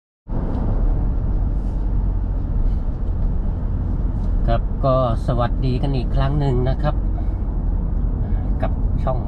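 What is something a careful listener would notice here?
A car engine hums and tyres roar steadily on a highway.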